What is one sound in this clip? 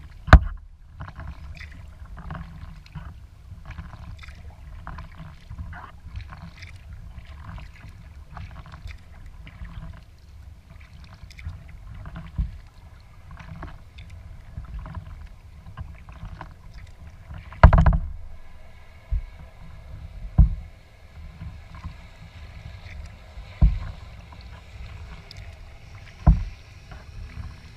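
Wind rumbles over the water.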